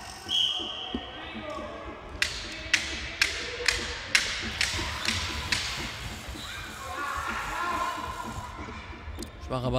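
Children shout during a game.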